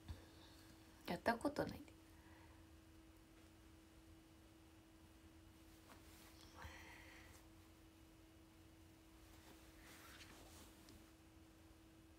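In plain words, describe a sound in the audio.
A young woman talks softly and close by.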